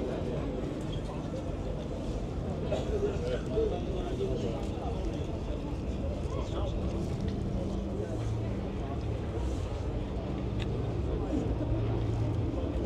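A crowd of people chatters outdoors nearby.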